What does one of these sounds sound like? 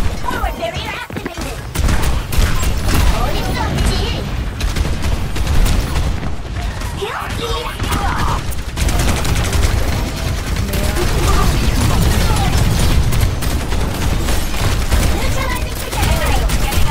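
Rapid energy gunfire crackles and zaps.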